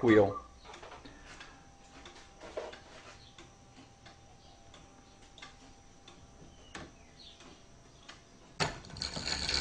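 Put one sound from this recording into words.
A wooden clock ticks softly with a steady rhythm of clicks.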